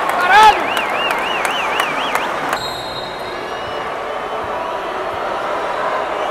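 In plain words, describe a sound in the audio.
A large crowd murmurs and chatters in an echoing arena.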